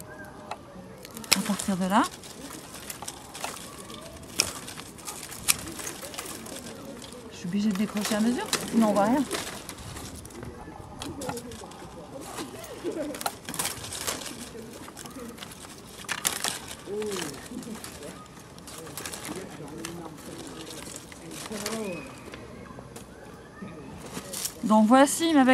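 Pruning shears snip through vine branches with sharp clicks.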